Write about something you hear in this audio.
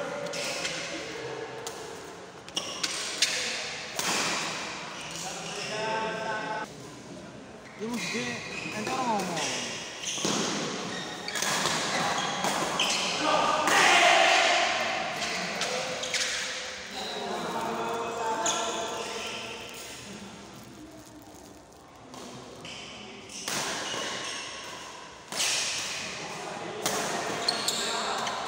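Shoes squeak and thud on a hard court floor.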